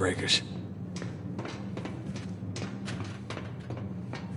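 Footsteps clang on a metal grating floor.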